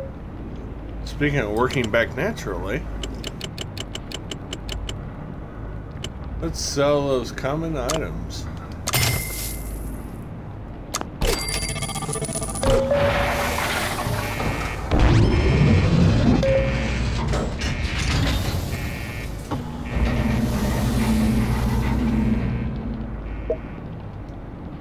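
Short electronic blips and chimes sound as game menus open and close.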